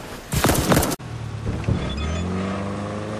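A car engine revs and rises in pitch.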